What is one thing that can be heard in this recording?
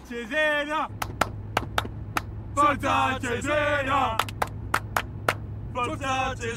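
Young men sing and shout loudly together.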